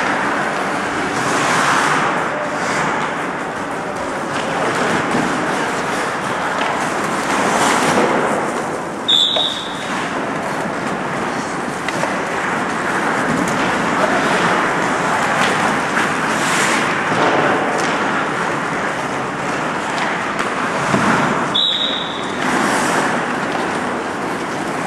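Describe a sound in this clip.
Ice hockey sticks clack against a puck and each other.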